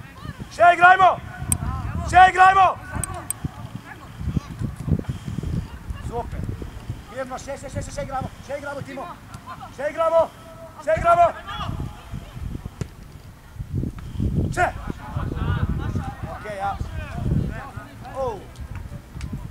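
Young boys shout and call to each other outdoors.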